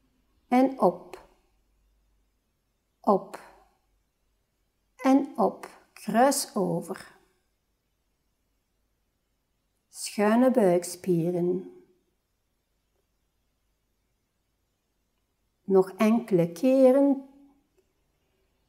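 A woman speaks calmly in short, spaced-out phrases, close by.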